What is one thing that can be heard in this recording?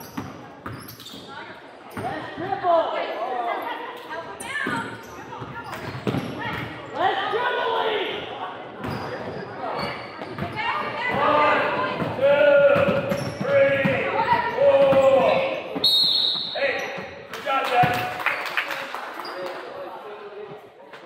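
Children shout and call out across a large echoing gym.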